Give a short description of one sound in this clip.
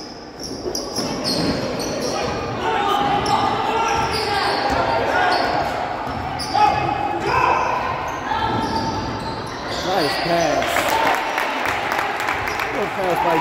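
Spectators chatter and call out in an echoing gym.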